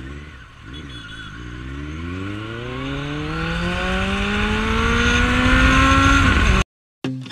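A motorcycle engine revs up, rising steadily in pitch as it speeds away.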